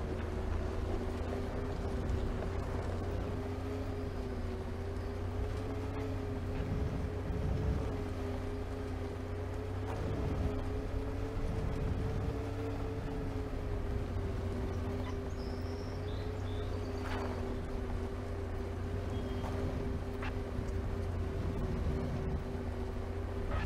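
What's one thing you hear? Tyres rumble over a bumpy concrete road.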